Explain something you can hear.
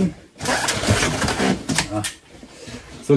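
Cardboard rustles and scrapes as a box is set down.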